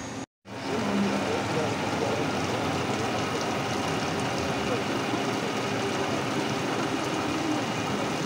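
Coolant splashes and sprays onto a spinning shaft.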